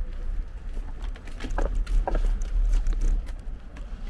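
Footsteps of a passer-by scuff on the pavement close by.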